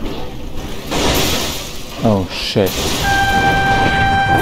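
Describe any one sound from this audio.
Heavy vehicles crash together with a loud metal crunch.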